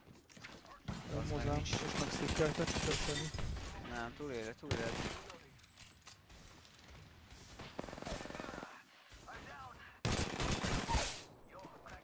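A gun fires in quick, loud bursts.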